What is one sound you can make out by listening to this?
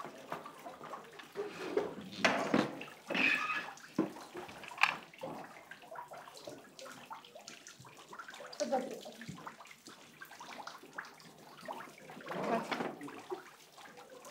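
A woman speaks with animation at close range.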